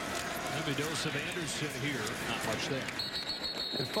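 Football players' pads clash as they collide.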